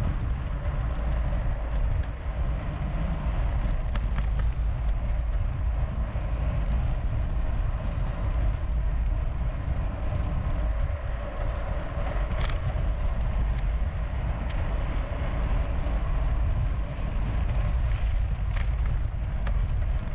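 A bicycle chain and drivetrain whir and tick as a rider pedals.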